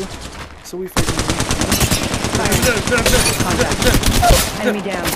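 A rifle fires in rapid bursts of gunshots.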